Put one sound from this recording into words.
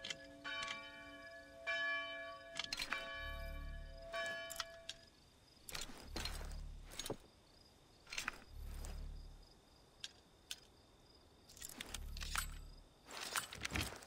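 Metal lock picks click and scrape inside a lock.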